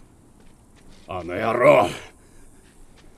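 A man answers calmly.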